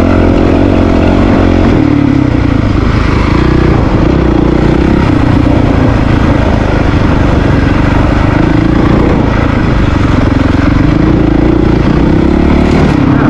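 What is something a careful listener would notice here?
A small motor hums steadily, rising and falling in pitch.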